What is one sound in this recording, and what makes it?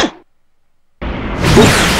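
A power aura roars and crackles.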